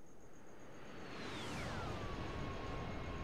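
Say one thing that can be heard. A jet engine roars as a jet flies past.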